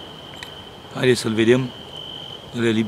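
A middle-aged man speaks briefly and calmly, close by.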